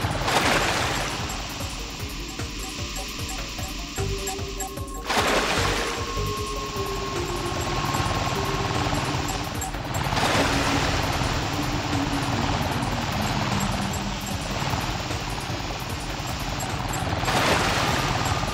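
A small hover vehicle whooshes along over water.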